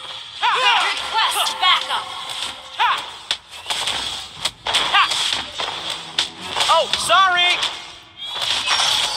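Quick fantasy spell and strike effects zap and clash in a battle game.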